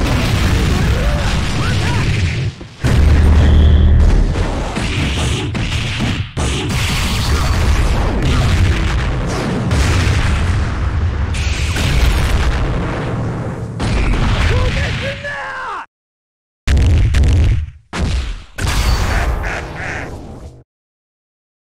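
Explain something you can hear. Fighting game blows and explosions crash rapidly.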